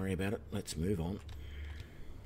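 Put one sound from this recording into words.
A man speaks briefly and calmly into a close microphone.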